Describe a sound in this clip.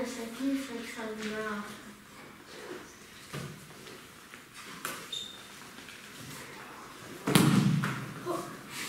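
Young children talk and call out in an echoing room.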